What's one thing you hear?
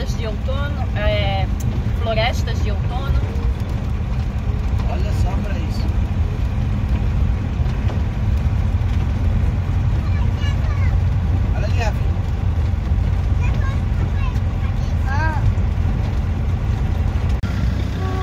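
Tyres crunch on a gravel road.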